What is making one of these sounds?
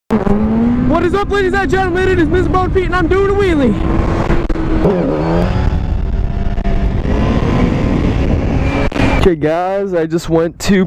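A motorcycle engine roars and revs up and down through the gears close by.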